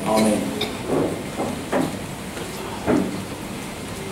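An elderly man speaks into a microphone over loudspeakers in an echoing hall.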